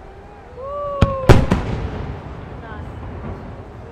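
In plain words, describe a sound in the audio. A firework shell bursts with a loud, echoing boom.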